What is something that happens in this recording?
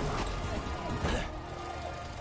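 A heavy thump lands on a car roof.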